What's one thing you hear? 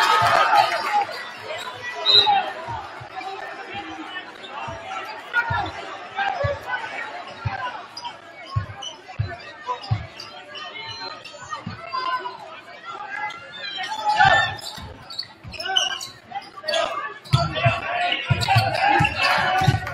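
A crowd chatters and calls out in an echoing gym.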